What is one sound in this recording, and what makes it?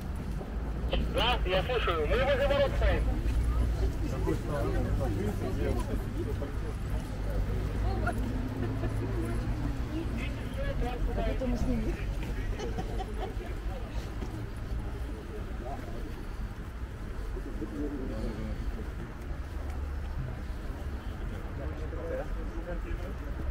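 Men talk in a group outdoors, close by.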